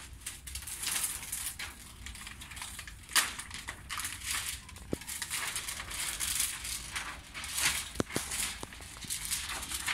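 A sheet of plastic tint film crinkles as it is handled.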